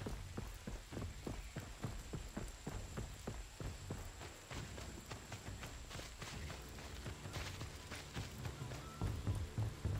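Heavy footsteps thud quickly on stone as a warrior runs.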